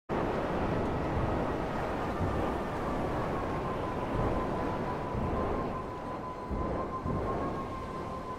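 Water splashes and rushes beneath a jet ski.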